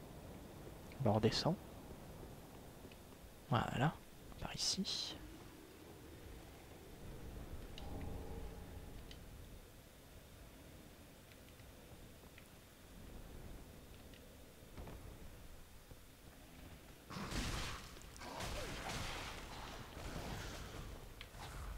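A sword strikes with heavy slashing hits.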